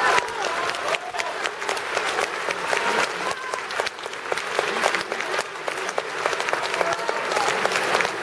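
A crowd applauds loudly and steadily in a large hall.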